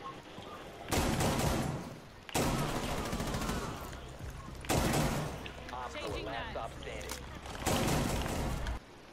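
Gunshots fire in short, rapid bursts.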